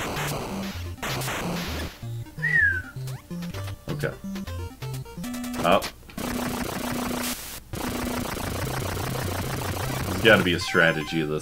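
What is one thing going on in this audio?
Chiptune video game music plays with bleeping sound effects.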